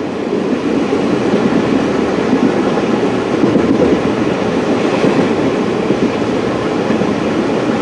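A moving vehicle's engine and tyres rumble steadily from inside the cabin.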